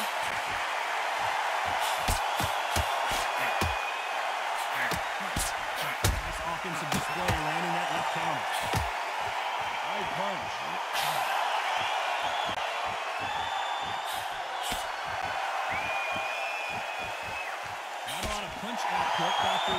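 A crowd murmurs and cheers steadily in a large arena.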